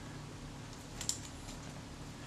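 A small metal part clicks down onto a hard surface.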